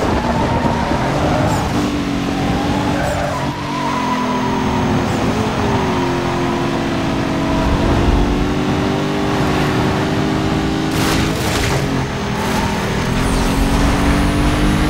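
A race car engine roars at high revs, with pitch shifting as the gears change.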